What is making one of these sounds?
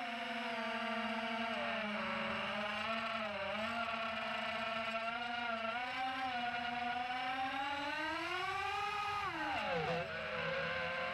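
Drone motors whine steadily, rising and falling in pitch as the drone speeds up and swoops.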